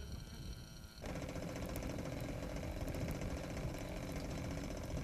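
A small model airplane engine idles close by.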